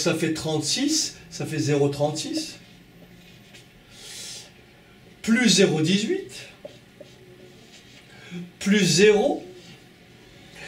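An older man speaks calmly and clearly, close by, in short phrases.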